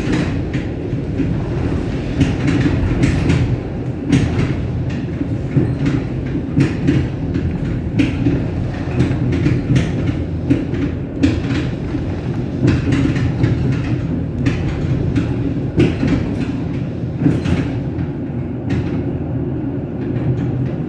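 Train wheels clatter over rail joints and points again and again.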